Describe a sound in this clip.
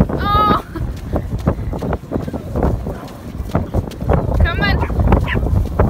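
A small dog yelps in short, high whines.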